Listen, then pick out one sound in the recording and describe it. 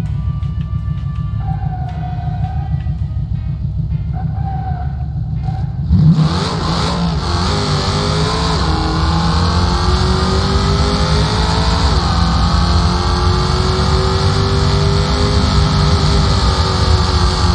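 A racing car engine revs and then roars at full throttle as it speeds up.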